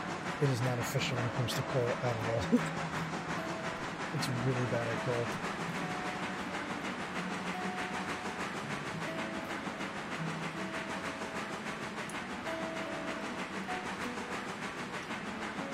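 A steam locomotive chugs steadily along the track, puffing in quick rhythm.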